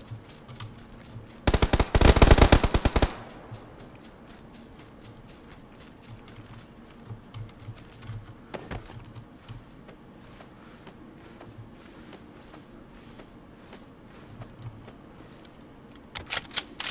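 Footsteps rustle softly through tall grass.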